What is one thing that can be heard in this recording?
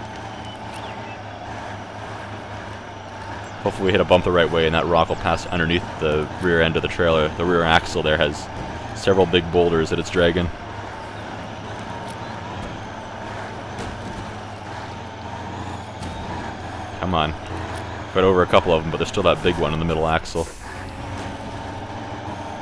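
A heavy truck engine rumbles steadily at low revs.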